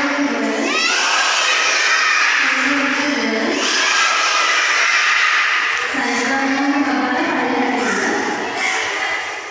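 A group of young children sing together loudly, close by.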